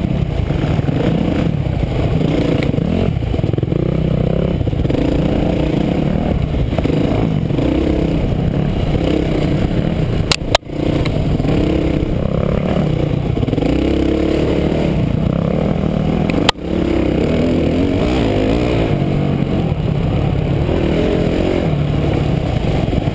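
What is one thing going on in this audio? A dirt bike engine revs and roars up close, rising and falling as it rides.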